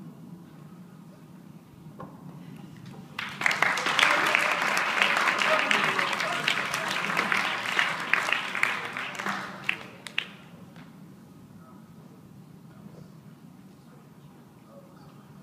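A group of acoustic guitars plays together in a large hall.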